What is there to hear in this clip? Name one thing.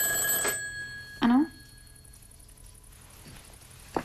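A young woman speaks softly into a telephone.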